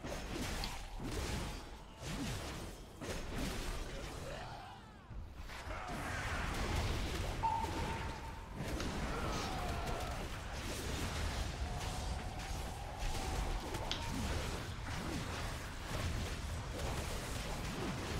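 Magic spells whoosh and crackle during a fantasy battle.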